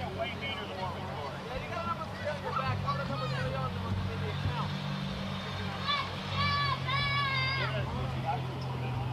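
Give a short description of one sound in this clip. Young women shout and call out to each other across an outdoor field.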